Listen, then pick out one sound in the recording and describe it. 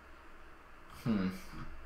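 A young man speaks briefly and casually, close to a microphone.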